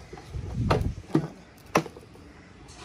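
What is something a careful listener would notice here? Plastic parts of a chainsaw click and knock as a hand handles them.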